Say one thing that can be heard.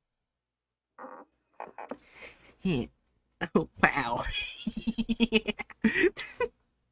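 A young woman talks and laughs with animation into a microphone.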